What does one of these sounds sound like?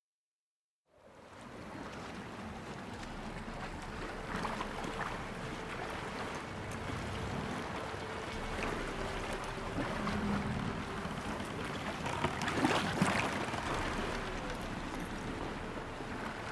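Water laps gently against a wooden boat.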